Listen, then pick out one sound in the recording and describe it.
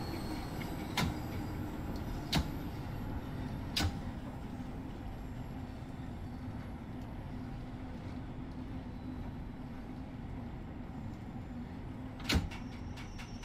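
Train wheels clack over rail joints a few times.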